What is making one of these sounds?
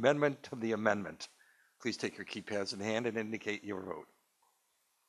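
A man speaks calmly over a microphone.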